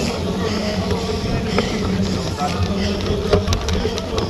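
A crowd of spectators cheers and calls out nearby.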